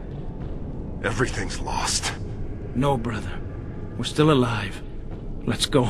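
A second man answers calmly and warmly, close up.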